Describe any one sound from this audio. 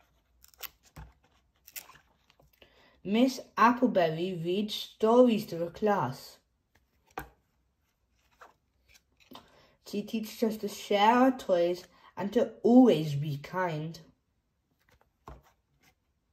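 Stiff board book pages turn with soft flaps.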